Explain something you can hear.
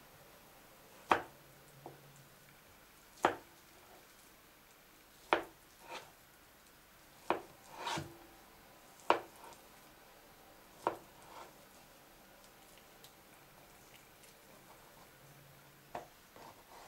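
A knife cuts through a potato and taps on a wooden board.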